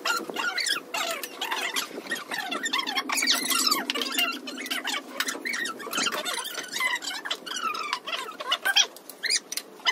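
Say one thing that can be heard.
A woman talks and laughs nearby.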